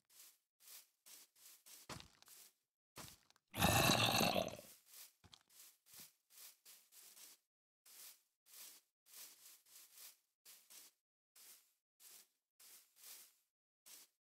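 Footsteps crunch softly on grass at a steady walking pace.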